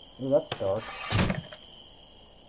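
A guillotine blade drops with a sharp thud.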